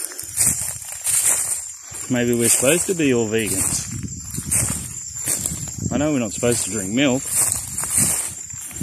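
Footsteps crunch through dry leaves and twigs at a steady walking pace.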